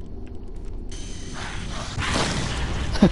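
A blast roars and crackles.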